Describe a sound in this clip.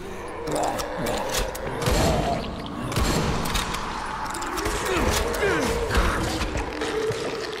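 Heavy blows thud and squelch against bodies.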